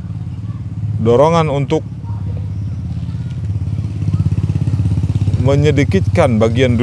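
A man recites in a slow, melodic chanting voice, close by.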